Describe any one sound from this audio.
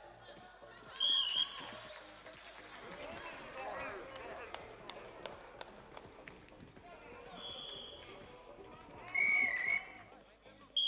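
A referee blows short, sharp blasts on a whistle.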